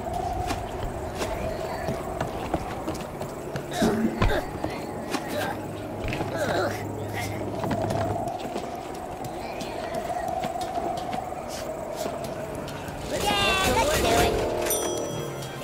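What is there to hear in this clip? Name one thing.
Footsteps patter on wooden planks.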